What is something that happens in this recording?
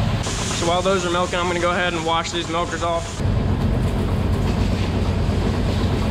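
A milking machine hums and pulses steadily.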